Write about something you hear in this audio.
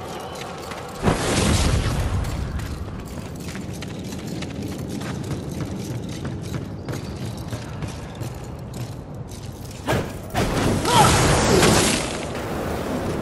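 Flames roar up in sudden bursts.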